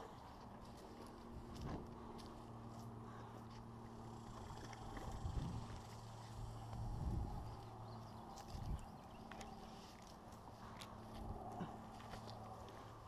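Footsteps thud and crunch softly on dry dirt and grass.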